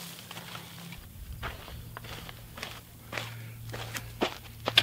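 Footsteps crunch on dry dirt and gravel.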